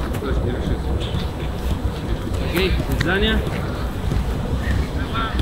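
A man juggles a football with his feet, the ball thudding on each touch.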